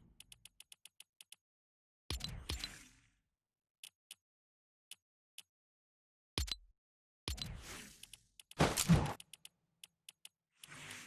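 Short menu clicks tick quickly.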